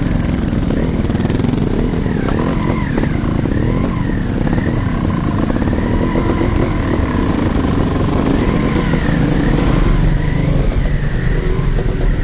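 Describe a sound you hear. Another dirt bike engine revs nearby.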